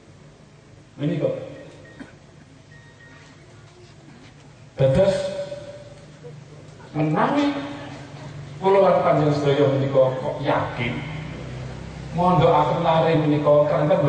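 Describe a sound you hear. A middle-aged man speaks with animation into a microphone, heard through loudspeakers.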